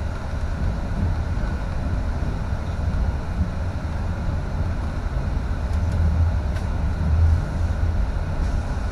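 Tyres roll over the road.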